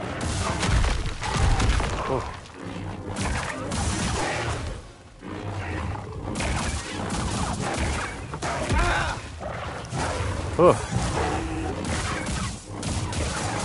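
Heavy thuds of blows land on a beast.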